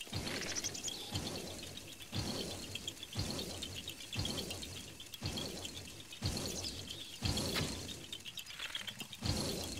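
A bowstring twangs as arrows are shot, again and again.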